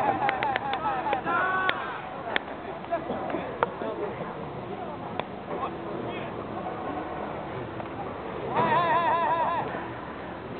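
Men shout calls to each other outdoors.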